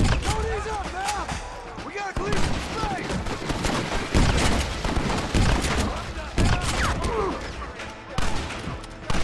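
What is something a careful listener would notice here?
Rifle shots crack one after another, echoing outdoors.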